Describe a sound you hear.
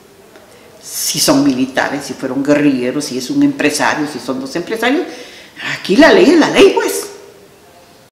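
An elderly woman speaks calmly and earnestly, close by.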